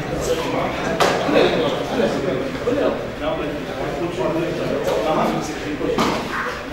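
Bodies thump onto a padded mat as people are thrown.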